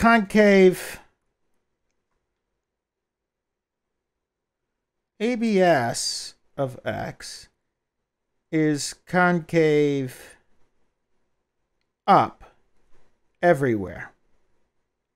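An older man lectures calmly through a headset microphone, in short phrases.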